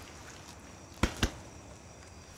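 A can knocks on the ground.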